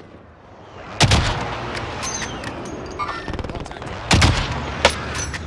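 A rifle fires loud, sharp shots that boom and echo.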